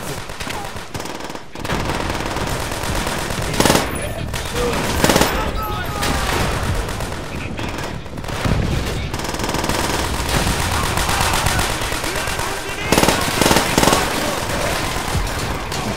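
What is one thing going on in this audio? Automatic gunfire rattles in loud bursts.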